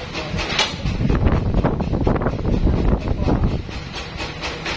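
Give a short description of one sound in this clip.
A heavy log rumbles as workers roll it across a sawmill carriage.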